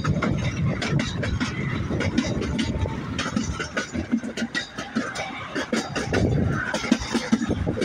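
A train rumbles and rattles along the tracks.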